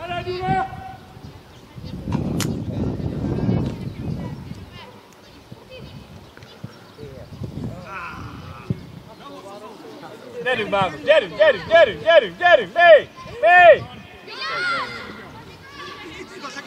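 Young players shout to each other outdoors across an open field.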